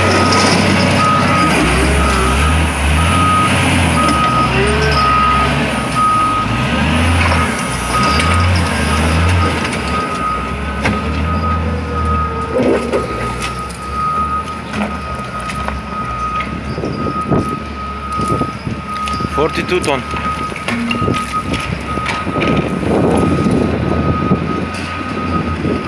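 A heavy loader's diesel engine rumbles loudly nearby.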